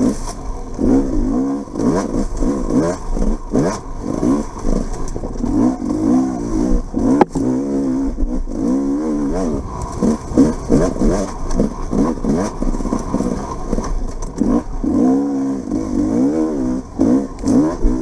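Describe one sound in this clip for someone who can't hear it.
A motorbike engine revs up and down over and over.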